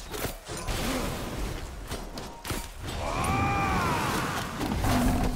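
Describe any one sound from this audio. Magic blasts crackle and whoosh.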